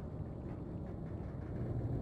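Bubbles rush and fizz through water.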